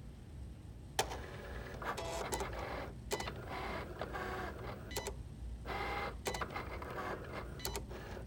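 A cutting machine whirs and buzzes in short bursts as its head moves.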